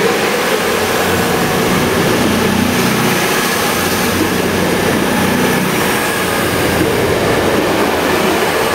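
A passenger train rumbles past close by, its engine droning loudly.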